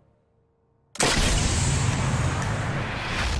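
A rifle fires a single loud shot with a booming echo.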